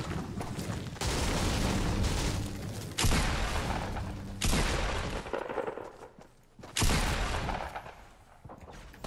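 Gunfire bursts out loud and close in quick volleys.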